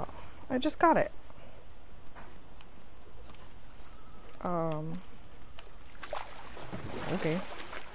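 Oars splash gently through water.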